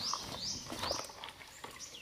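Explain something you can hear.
Water splashes softly in a basin as hands wash in it.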